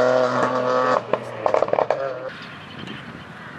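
A rally car engine drones faintly in the distance.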